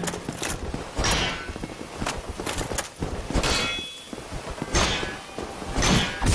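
A heavy blade swooshes through the air several times.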